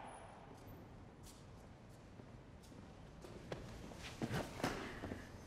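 Footsteps echo on a concrete floor in a large hall.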